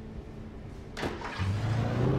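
A truck door slams shut.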